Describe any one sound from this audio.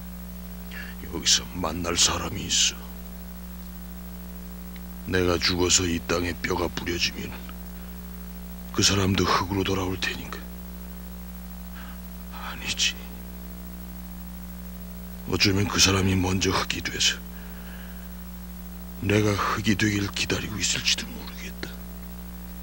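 A man answers in a low, strained voice, close by.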